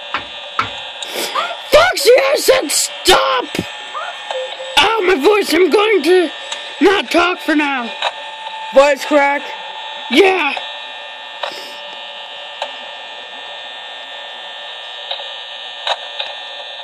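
A small tablet speaker plays a steady electronic hum.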